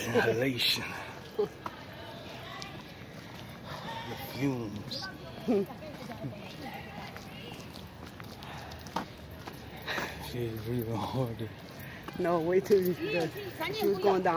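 Young people talk and laugh excitedly close by.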